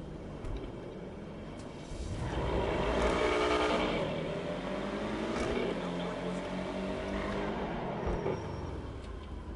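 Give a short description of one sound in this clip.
A car engine revs and hums while driving.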